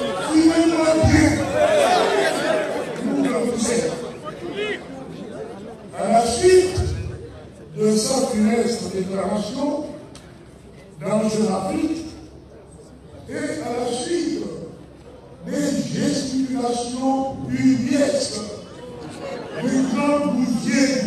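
An elderly man speaks forcefully into a microphone over a loudspeaker, outdoors, in bursts with pauses.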